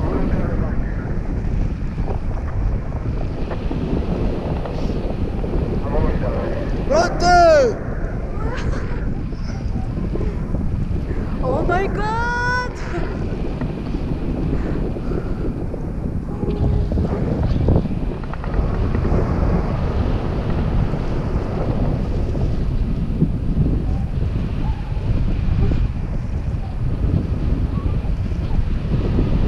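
Wind roars steadily over a microphone outdoors.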